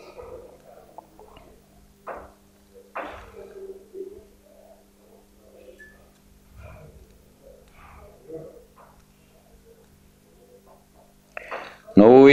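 An elderly man speaks calmly at a distance in a quiet room.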